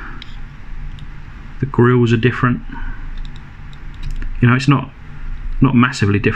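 Small plastic toy cars click softly against each other in a person's hands.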